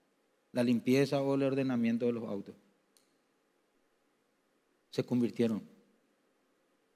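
A man speaks emphatically into a microphone, in short bursts with pauses.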